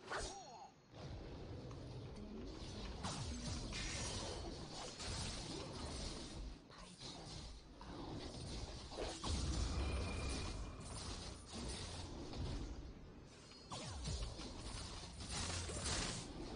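Loud game combat sounds of hits and blasts clash densely.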